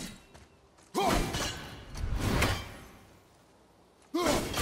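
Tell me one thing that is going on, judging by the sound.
An axe whooshes through the air and strikes with a heavy thud.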